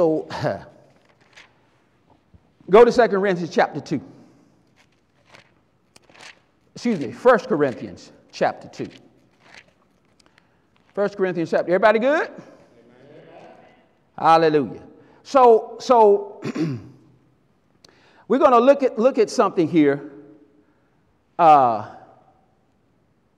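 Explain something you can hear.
A man preaches with animation through a microphone and loudspeakers, in a large echoing hall, pausing between phrases.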